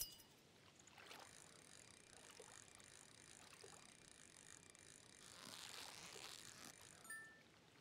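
A fishing reel whirs steadily as a fish is reeled in.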